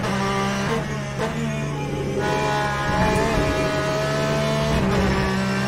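A racing car engine roars loudly, its pitch jumping as it shifts gears.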